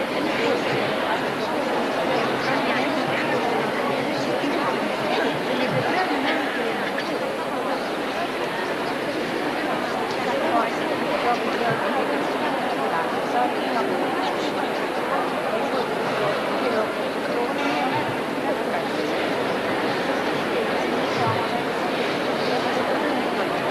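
A crowd of men and women murmurs and chants together in a large echoing hall.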